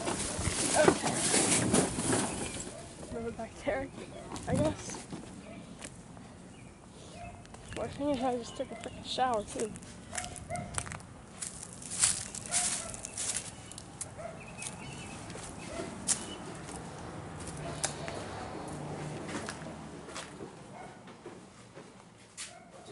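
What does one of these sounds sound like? Footsteps crunch through dry leaves and scuff on pavement.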